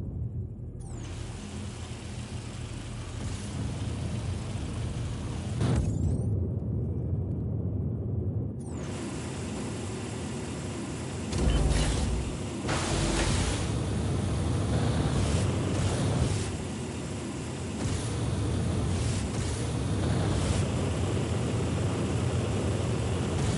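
Wind rushes past at high speed.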